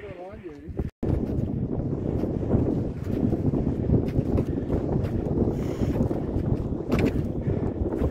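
Wind blows hard and rumbles against the microphone.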